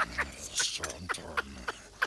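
A male creature speaks in a gruff, nervous voice.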